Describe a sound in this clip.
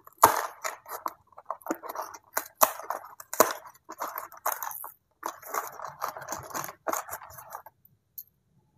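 Cardboard packaging crinkles and tears as it is pulled open.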